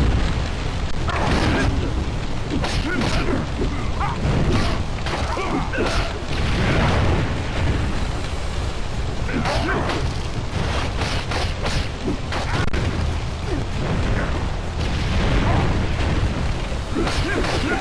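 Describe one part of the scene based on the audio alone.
Blows land with sharp thuds and slashes.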